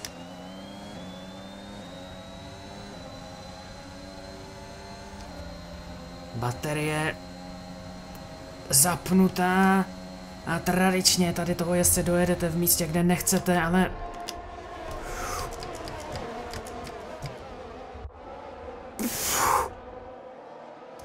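A racing car engine whines at high revs, rising and dropping as the car changes gear.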